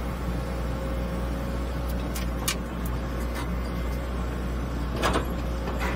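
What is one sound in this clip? A diesel excavator engine rumbles steadily close by.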